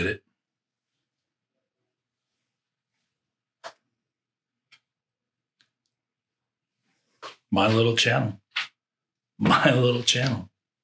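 A man speaks with animation close to a microphone, with pauses.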